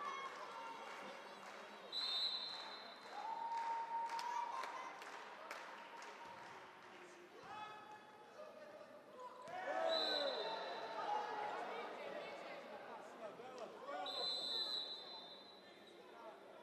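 A crowd in a large echoing hall cheers and chatters.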